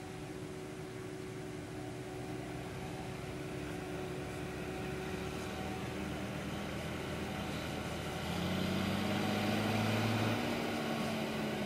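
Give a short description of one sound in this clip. A second tractor engine rumbles nearby, rising as it approaches.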